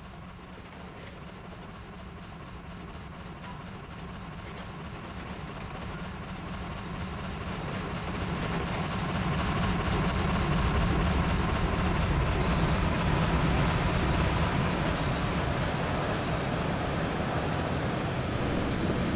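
A steam locomotive rumbles and chuffs, growing louder.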